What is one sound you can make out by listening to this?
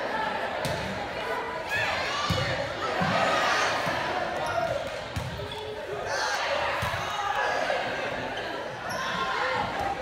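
A large crowd of young people chatters and cheers, echoing in a large hall.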